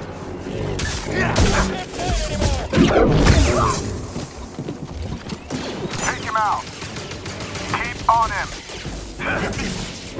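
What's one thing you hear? Lightsaber blades clash with sharp impacts.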